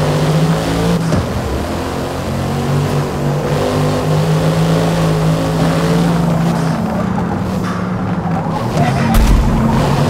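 Tyres squeal as a car skids through corners.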